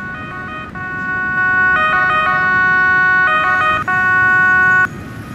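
A fire engine's siren wails and grows louder.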